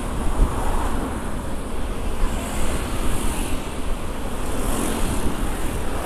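A motorbike passes close by.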